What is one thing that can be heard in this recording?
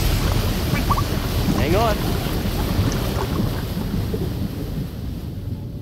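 Water rushes and splashes.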